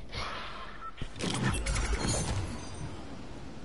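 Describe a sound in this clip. A glider deploys with a whooshing burst.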